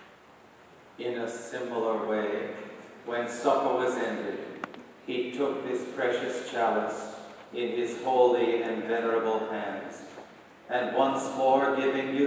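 An older man chants through a microphone in a large echoing hall.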